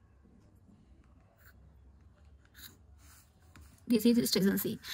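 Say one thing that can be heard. A pencil scratches across paper along a ruler.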